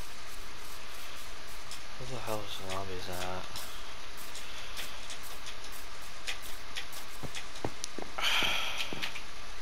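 Footsteps patter steadily across grass and then onto wooden boards.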